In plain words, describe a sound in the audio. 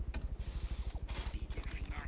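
A power drill rattles in rapid bursts.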